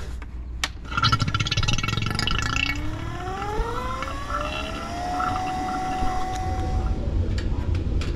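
A vacuum pump motor starts up, whines up to speed and runs.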